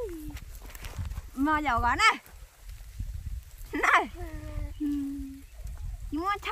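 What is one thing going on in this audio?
A young girl talks in a high, lively voice close by.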